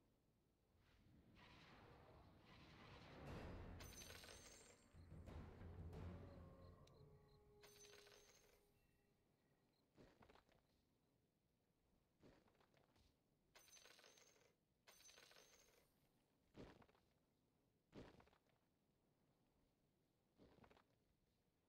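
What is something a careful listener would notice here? Short game sound effects chime and whoosh now and then.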